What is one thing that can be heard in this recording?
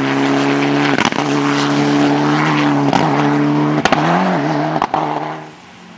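A rally car engine pops and backfires.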